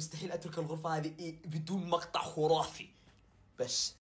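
A young man speaks animatedly close to the microphone.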